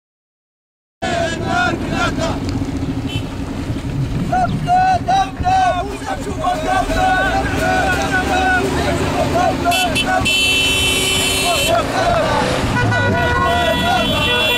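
An armoured vehicle's engine rumbles as it drives along a road.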